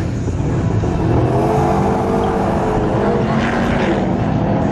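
A car engine revs hard and roars away.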